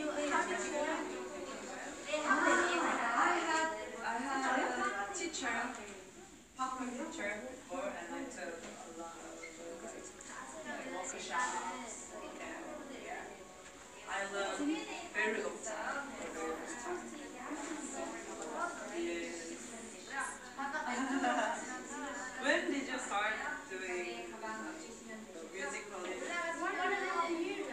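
Young women chat and laugh with animation, heard through a phone's microphone.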